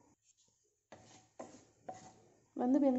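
A wooden spatula scrapes across a frying pan.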